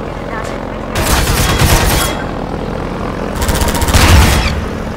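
A rifle fires rapid bursts with sharp cracks.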